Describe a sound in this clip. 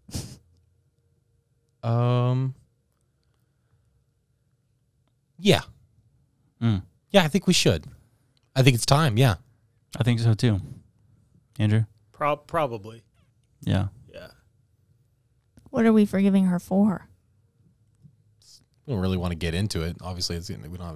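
A man talks close to a microphone in short bursts, with pauses.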